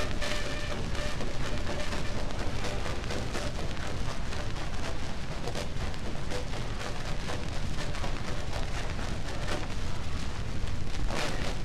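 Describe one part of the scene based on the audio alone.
A needle crackles and hisses on a spinning record.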